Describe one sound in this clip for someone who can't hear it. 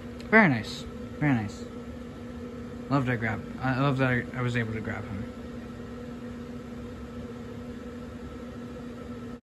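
A blower fan hums steadily.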